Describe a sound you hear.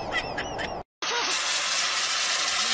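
Steam hisses from a car engine.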